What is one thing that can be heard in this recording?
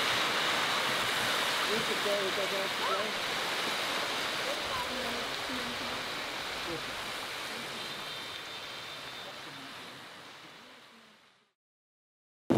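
Small waves lap gently on a rocky shore.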